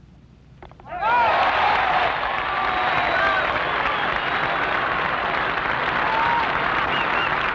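A large outdoor crowd roars and cheers loudly.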